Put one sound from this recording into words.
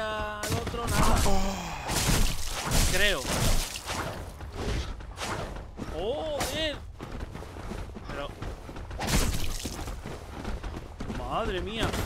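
Sword blows clang and thud.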